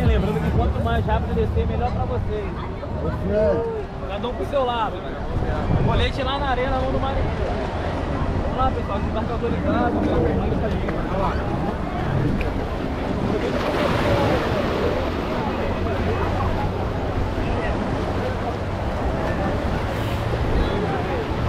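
A crowd of people chatter and call out nearby.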